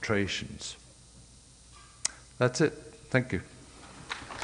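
A man speaks through a microphone, pausing between phrases.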